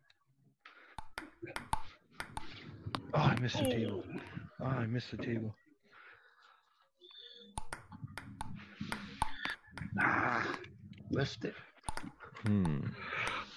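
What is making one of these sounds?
A ping-pong ball bounces on a table with light taps.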